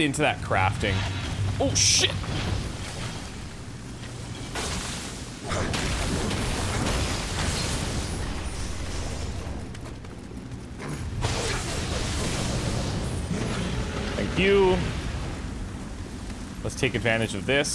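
Fire bursts and crackles.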